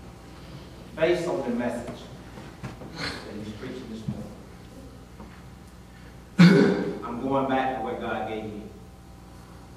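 A man speaks calmly through a microphone in a reverberant hall.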